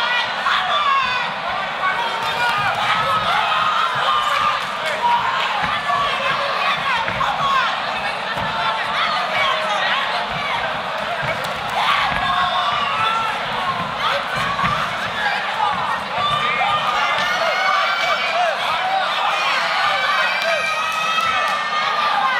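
A crowd in a large hall shouts and cheers.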